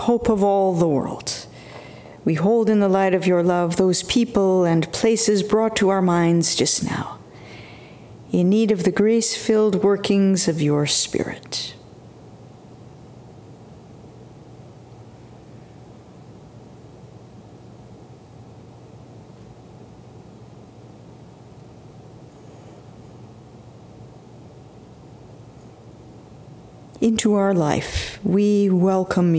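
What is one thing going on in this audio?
An older woman speaks slowly and calmly into a microphone, with long pauses.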